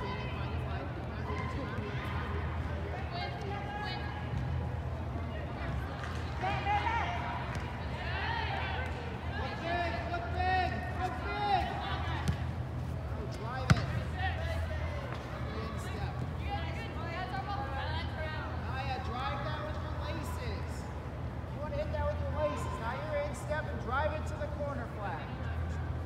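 Young women shout to each other across a large echoing hall.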